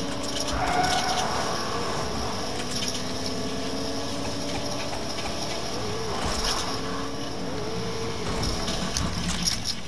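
A pickup truck engine hums as it drives over snow.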